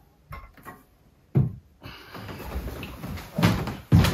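A man rises from a chair.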